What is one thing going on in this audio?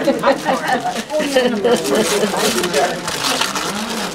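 Wrapping paper rustles as a woman opens a gift.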